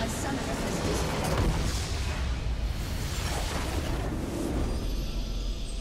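A crystal shatters with a loud explosive crash.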